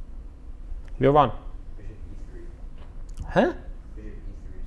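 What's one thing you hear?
A man speaks a few short words calmly into a close microphone.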